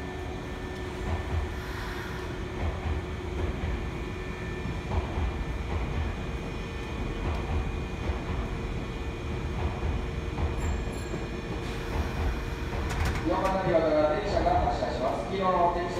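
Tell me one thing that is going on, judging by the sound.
A train rumbles slowly along the tracks.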